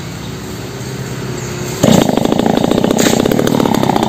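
A chainsaw cuts through wood.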